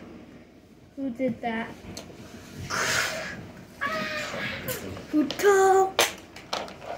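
A young child talks and squeals excitedly close by.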